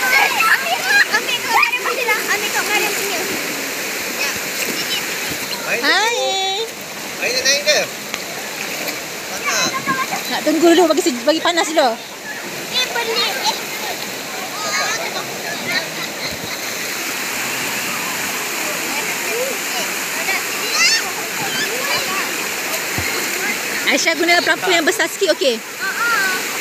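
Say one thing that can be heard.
Young girls shout and squeal with excitement close by.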